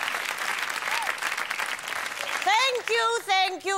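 An elderly woman speaks loudly in a wavering, drawn-out voice close to a microphone.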